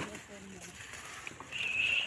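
A hand sloshes through shallow water among grass stems.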